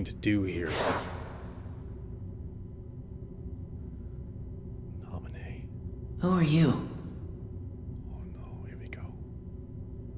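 A young man speaks briefly and calmly, close to a microphone.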